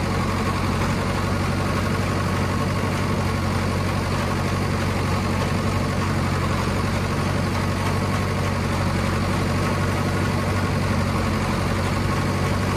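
A haybine clatters as it cuts through thick grass and weeds.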